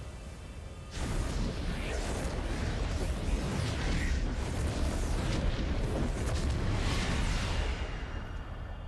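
A loud roaring whoosh surges and rumbles, then dies away.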